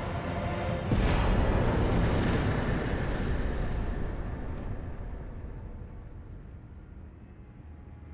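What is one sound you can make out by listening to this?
A deep rushing swell rises and slowly fades away.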